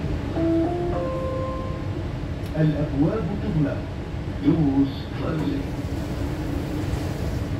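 A train rumbles low and steadily.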